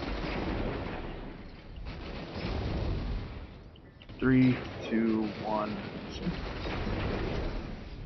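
Energy blasts crackle and rumble loudly.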